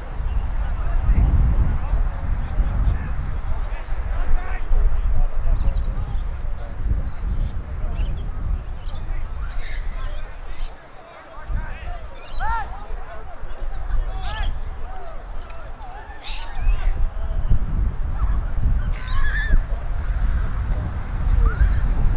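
Players shout to each other across a field in the distance.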